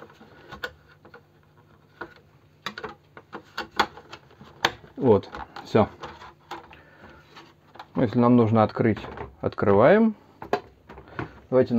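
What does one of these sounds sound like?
Hard plastic parts click and knock together.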